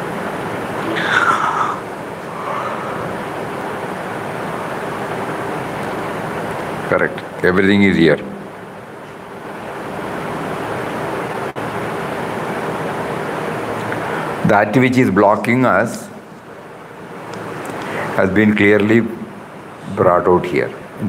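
An elderly man speaks calmly into a microphone in short bursts.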